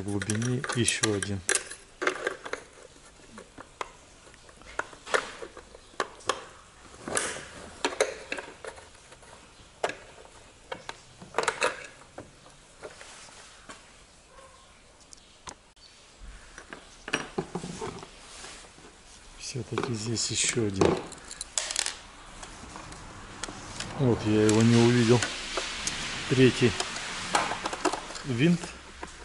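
Plastic parts click and knock as hands pry them apart.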